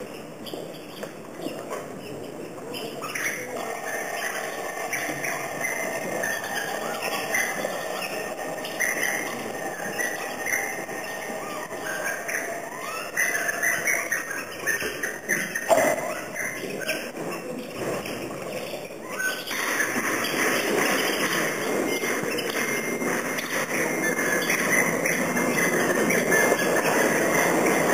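Small percussion clinks and taps.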